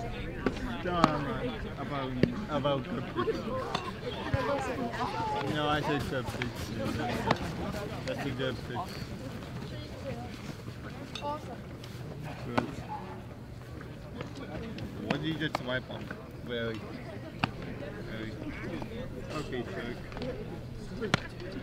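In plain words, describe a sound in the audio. Several people talk nearby outdoors.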